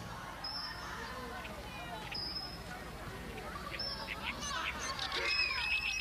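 Young children chatter and call out as they play nearby.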